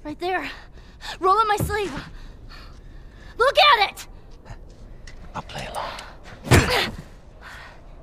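A young girl cries out and pleads in distress, close by.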